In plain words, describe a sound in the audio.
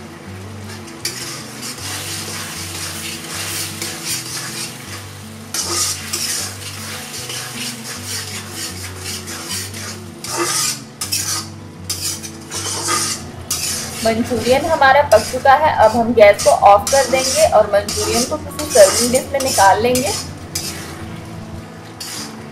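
Sauce bubbles and sizzles in a hot wok.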